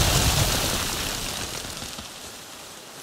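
A waterfall rushes loudly nearby and fades away.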